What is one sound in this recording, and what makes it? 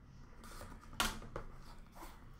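A plastic box clicks shut.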